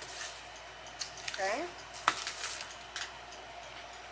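A brush dabs and stirs in a tub of liquid.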